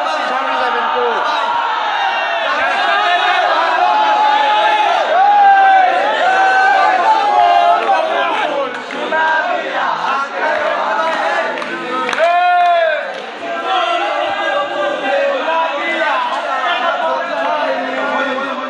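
A crowd of young men and women sing and cheer loudly nearby.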